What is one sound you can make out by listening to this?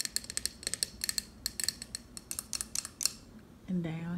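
Fingers tap and click on a hard tabletop.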